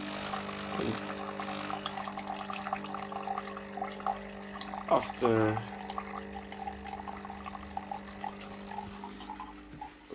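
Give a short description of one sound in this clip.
Coffee trickles into a glass cup.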